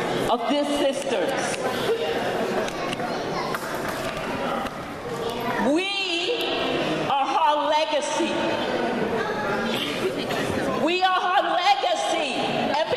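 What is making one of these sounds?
A crowd of people murmurs and talks in an echoing hall.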